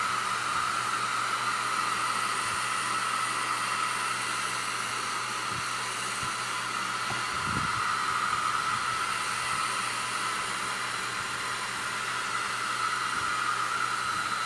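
A heat gun whirs and blows steadily close by.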